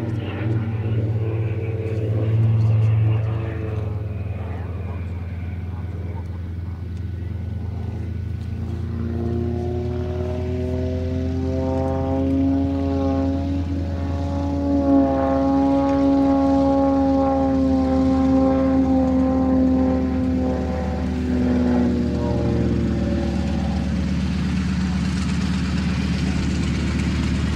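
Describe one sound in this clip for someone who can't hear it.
A small propeller plane drones overhead, its engine pitch rising and falling as it flies.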